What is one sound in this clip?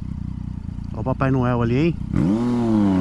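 A motorcycle engine revs sharply.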